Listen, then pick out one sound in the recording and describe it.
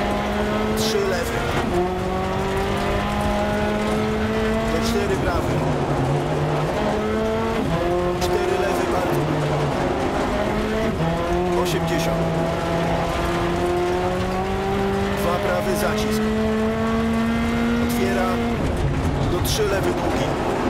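A rally car engine roars, rising and dropping in pitch as gears change.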